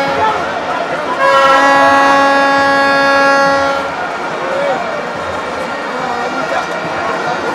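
A large stadium crowd cheers and chatters in the open air.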